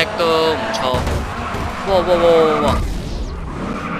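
A car crashes with a heavy thud.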